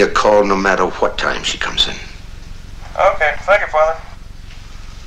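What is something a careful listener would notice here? A middle-aged man talks quietly into a phone.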